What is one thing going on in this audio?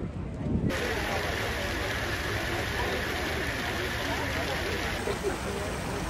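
A large crowd chatters outdoors.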